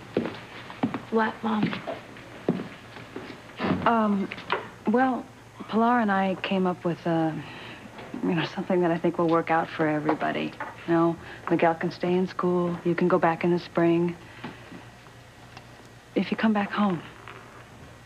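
A woman speaks tensely nearby.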